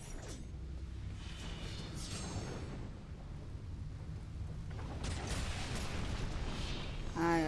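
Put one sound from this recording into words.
A fiery blast roars and crackles.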